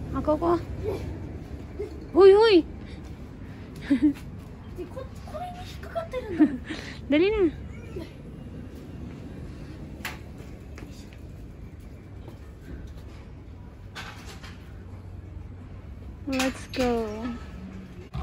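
A child talks excitedly close by, outdoors.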